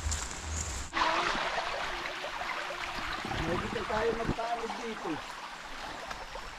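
Water flows steadily through a narrow channel.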